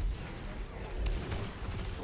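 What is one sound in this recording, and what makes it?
A loud explosion booms and crackles.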